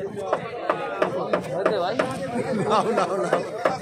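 A crowd of men chatter and call out outdoors.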